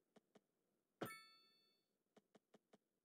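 A bright chime rings out once.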